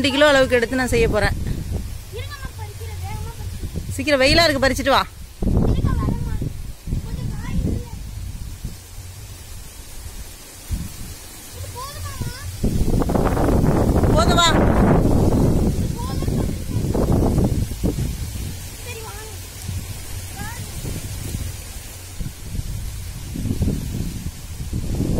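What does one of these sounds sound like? Leafy plants rustle as a boy pushes through them.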